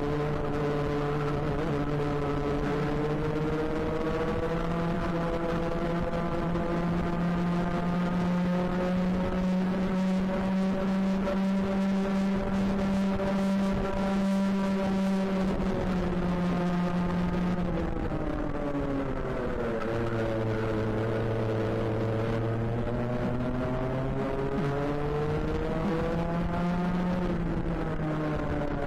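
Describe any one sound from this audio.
A kart engine buzzes loudly close by, its pitch rising and falling with the speed.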